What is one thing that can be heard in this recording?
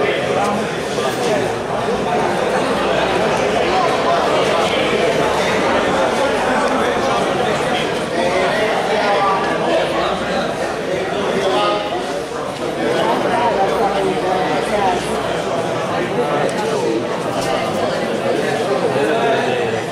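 A crowd of spectators chatters steadily in a large echoing hall.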